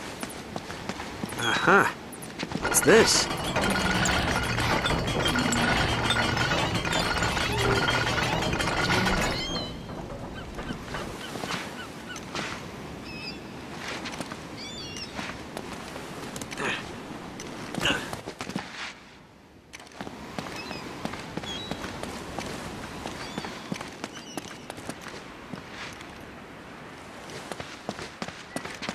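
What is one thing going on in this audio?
Footsteps walk and run on stone.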